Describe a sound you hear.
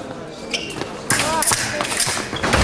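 Fencing blades clash and clatter.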